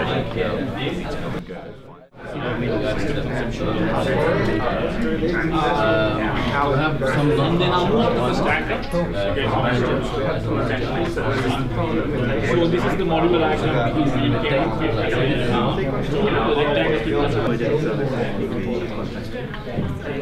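Many young men and women chatter together at once in a room.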